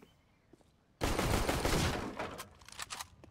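A wooden crate smashes apart with a loud crash.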